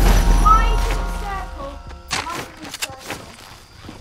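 Footsteps run across the ground.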